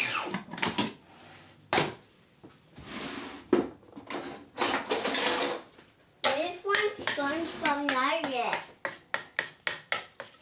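Plastic parts clack as a food processor bowl is handled.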